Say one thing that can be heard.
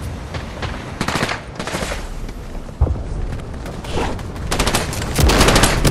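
Footsteps run across hard ground.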